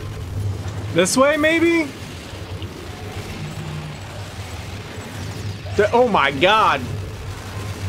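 A young man close to a microphone exclaims loudly.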